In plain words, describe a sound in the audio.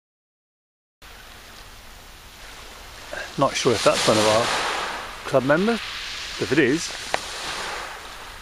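Small waves lap gently against a pebble shore.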